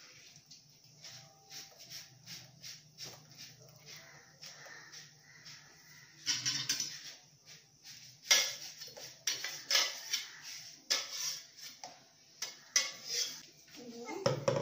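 A metal jug knocks and clinks against a pan.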